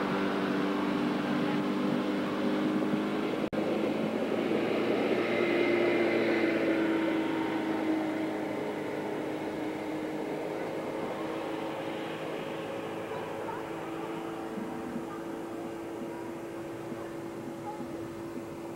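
Water sprays and splashes behind a water skier.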